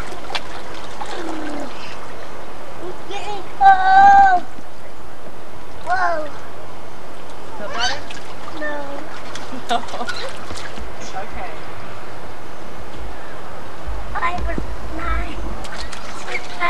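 Water splashes in a small pool.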